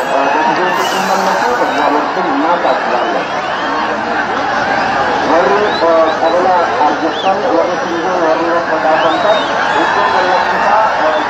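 A huge outdoor crowd chants, shouts and cheers loudly.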